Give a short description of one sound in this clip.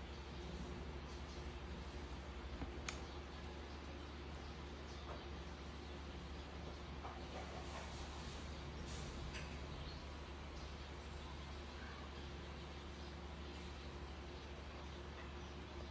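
A baby monkey sucks and gulps milk from a bottle.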